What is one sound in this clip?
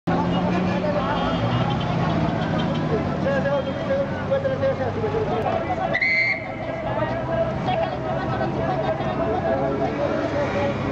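Vehicle engines idle and rumble nearby.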